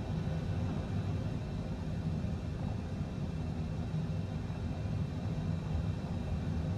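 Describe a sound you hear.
A jet engine hums steadily while a plane taxis.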